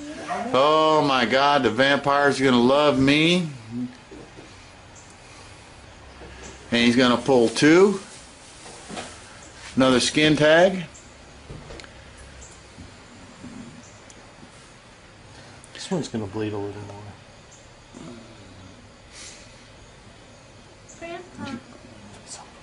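A man talks close by in a relaxed, casual way.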